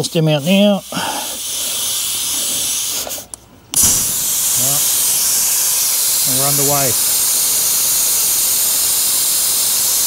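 Air hisses steadily out of a tyre valve.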